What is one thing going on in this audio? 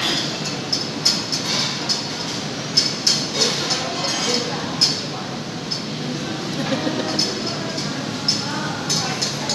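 Kitchen hoods hum steadily in the background.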